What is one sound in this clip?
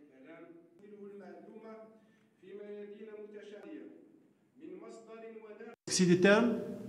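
A man speaks through a microphone, heard faintly in a large hall.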